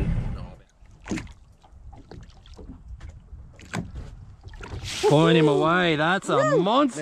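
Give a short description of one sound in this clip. Water splashes as a fishing net lifts a fish out.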